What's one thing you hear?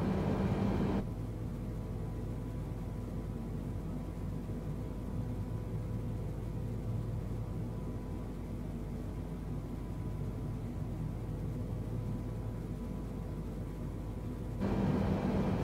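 A jet engine roars steadily, heard muffled from inside a cabin.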